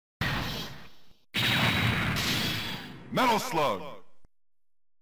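An arcade game plays loud crashing sound effects.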